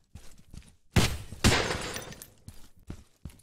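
An assault rifle fires a short burst.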